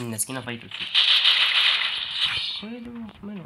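A rifle fires a rapid burst of gunshots.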